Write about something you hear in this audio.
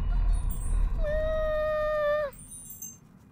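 A cartoon cat makes a long, steady trilling mew.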